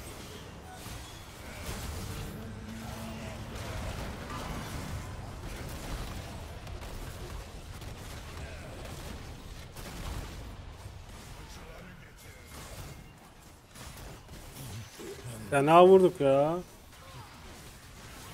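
Video game spells burst and crackle during a fight.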